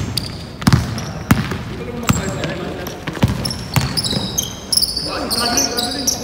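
Basketballs bounce on a hard floor in a large echoing hall.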